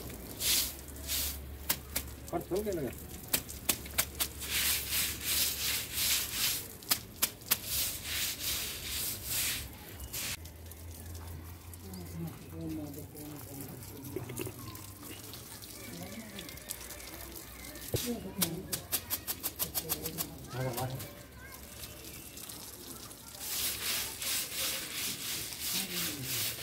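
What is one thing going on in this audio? A broom scrubs and swishes over wet cement.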